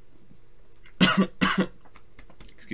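A young man coughs.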